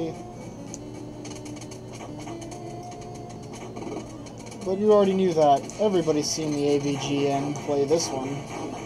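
Bleepy electronic game music plays steadily.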